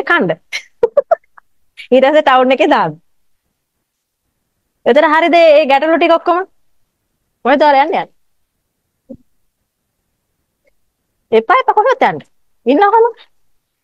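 A young woman speaks with animation close to a microphone, pausing between phrases.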